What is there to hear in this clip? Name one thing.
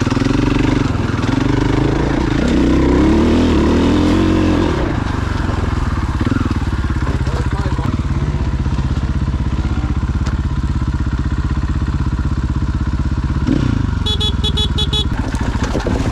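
A dirt bike engine roars and revs up close.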